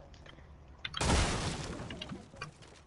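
A pickaxe strikes a wall with a sharp thud.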